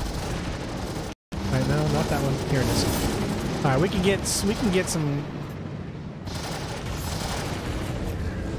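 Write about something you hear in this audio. A spacecraft engine rumbles steadily.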